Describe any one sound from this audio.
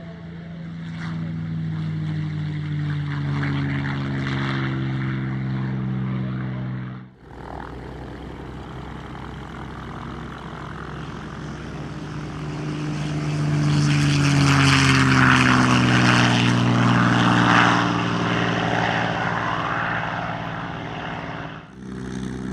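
A propeller plane engine roars loudly as the plane speeds down a runway and takes off.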